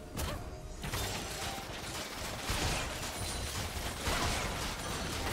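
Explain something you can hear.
Magic spells whoosh and crackle in a fast fantasy battle.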